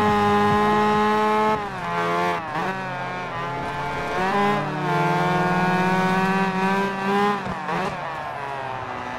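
Tyres screech on the road through corners.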